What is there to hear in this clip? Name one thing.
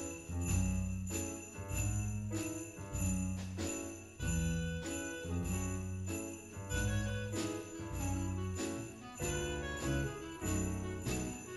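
An orchestra plays a lively piece with strong rhythmic accents.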